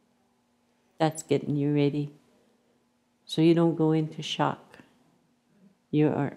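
An elderly woman speaks calmly and slowly, close to a microphone, in short phrases with pauses.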